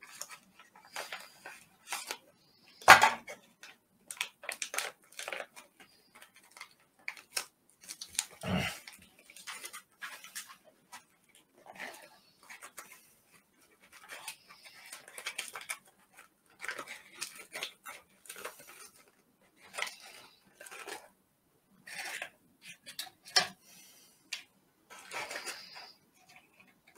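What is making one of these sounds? Paper packets rustle and crinkle as they are torn open.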